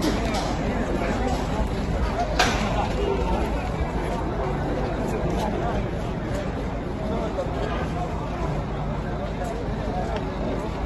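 A large crowd of men chatters and calls out nearby, outdoors.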